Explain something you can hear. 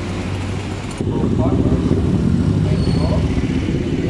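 Motorcycle engines rumble loudly together in traffic.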